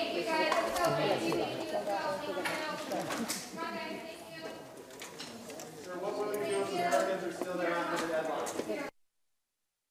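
Paper rustles in an elderly man's hands.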